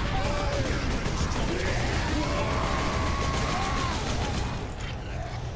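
Video game gunfire and combat noises play.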